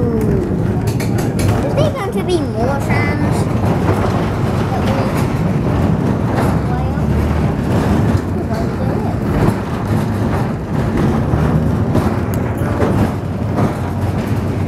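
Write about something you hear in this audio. A tram rumbles and rattles steadily along its tracks.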